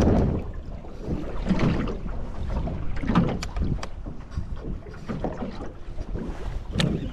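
Wind rumbles across the open water.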